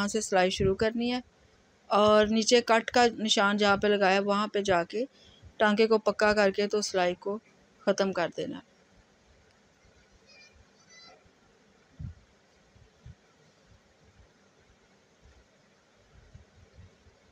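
Cloth rustles softly as hands smooth it.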